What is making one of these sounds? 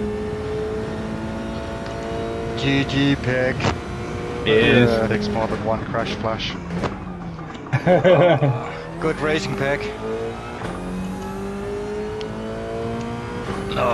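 A racing car engine roars steadily, its pitch rising and falling as the car shifts gears.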